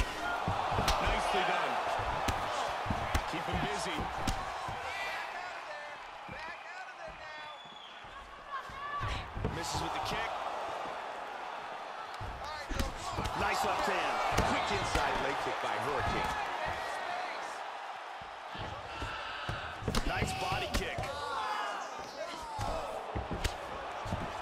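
A crowd cheers and roars loudly throughout.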